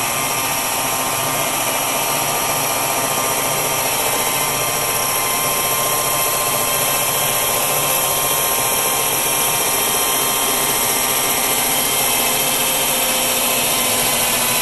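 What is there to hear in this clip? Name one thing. A portable band sawmill runs with a steady whine.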